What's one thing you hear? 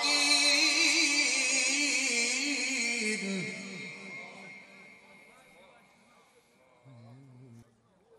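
A man chants in a long, wavering melodic voice through a loudspeaker, and the sound fades into echo.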